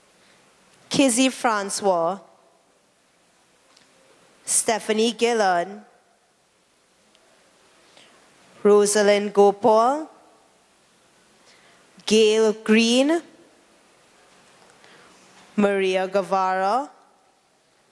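A woman calls out loudly in short bursts, with pauses between them.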